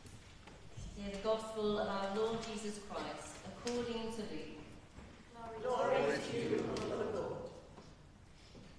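A man chants alone, echoing in a large hall.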